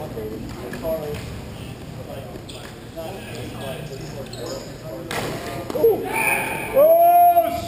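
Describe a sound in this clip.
Skate blades scrape across a rink in a large echoing hall.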